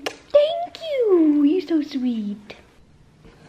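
A young woman speaks playfully in a high, sing-song voice close by.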